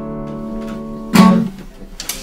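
An acoustic guitar is strummed briefly.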